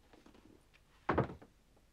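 A bag thuds down.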